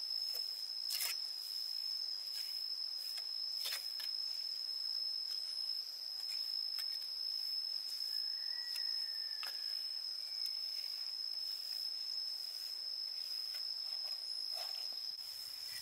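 A stiff brush scrubs and scrapes against a boat's hull.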